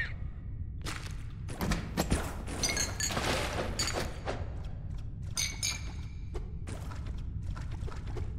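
Electronic game effects chime and whoosh.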